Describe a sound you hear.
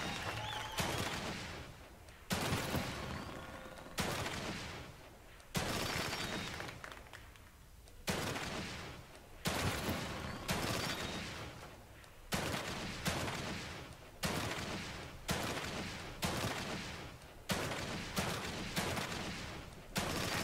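Gunshots fire one after another, each ringing out and fading with a long echo.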